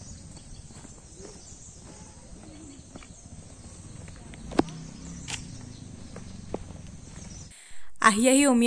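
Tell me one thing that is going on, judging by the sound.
Footsteps tap on a stone path.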